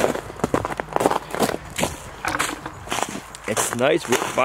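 Footsteps crunch on snowy leaves.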